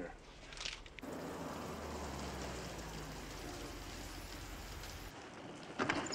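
Rain pours steadily onto a wet street.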